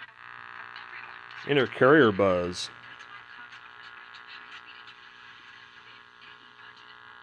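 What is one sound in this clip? An old television hums and buzzes steadily.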